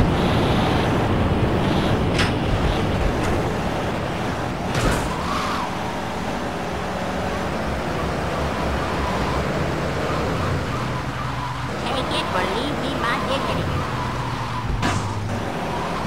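A car engine pulls away and drives along a road.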